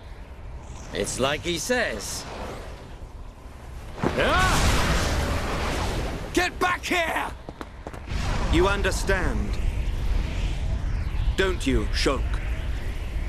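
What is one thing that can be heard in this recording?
A man speaks in a slow, low voice.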